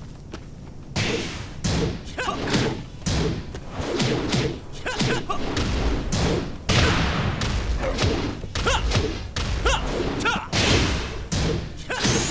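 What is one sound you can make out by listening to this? Punches and kicks land with sharp smacks and thuds.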